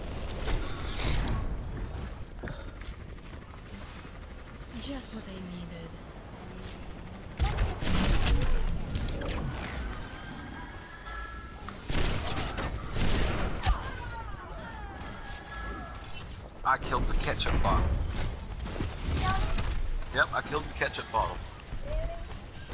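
Gunfire and explosions from a video game burst in loud bursts.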